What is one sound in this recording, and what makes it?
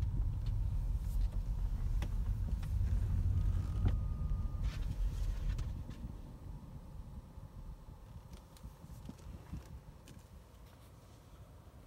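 A car's engine hums low and steady from inside the cabin, then grows quieter.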